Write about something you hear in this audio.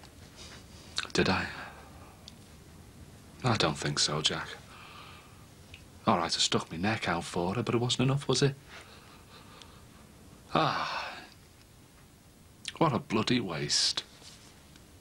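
A middle-aged man speaks quietly and tensely, close by.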